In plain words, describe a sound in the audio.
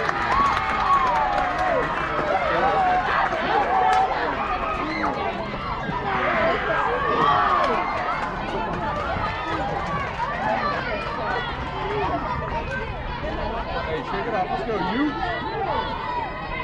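Many young girls chatter and cheer nearby outdoors.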